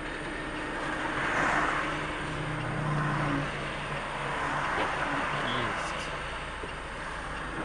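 Passing cars swish by on wet pavement.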